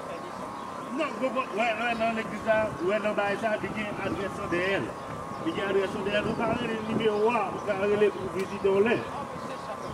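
A man speaks with animation through a microphone outdoors.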